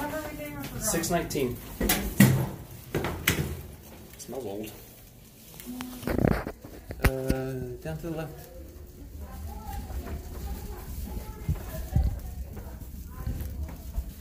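A fabric bag rustles and bumps as it swings.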